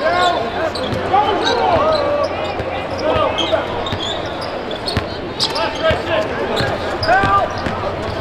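Sneakers squeak sharply and repeatedly on a hardwood court.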